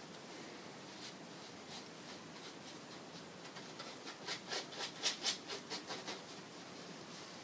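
A paintbrush dabs and scrapes against a canvas in quick strokes.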